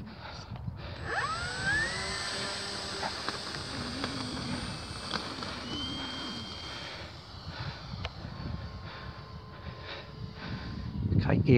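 A small model plane's electric motor whines as it takes off and flies off into the distance.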